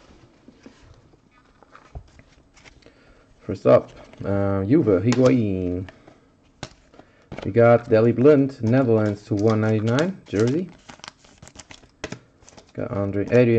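Trading cards rustle and flick softly as hands shuffle through them.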